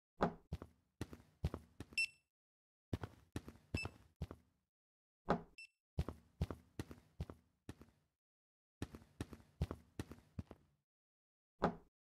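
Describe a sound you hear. Chairs and desks clatter and thud in quick bursts as they are set down.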